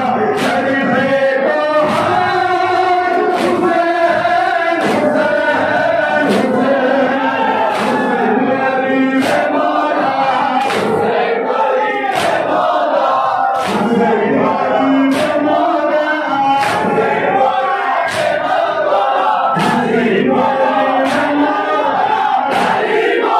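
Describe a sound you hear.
A young man chants loudly into a microphone, heard through loudspeakers.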